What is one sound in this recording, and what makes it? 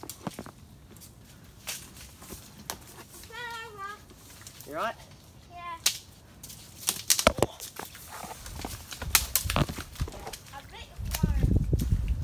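Branches creak and snap as someone climbs through dense roots.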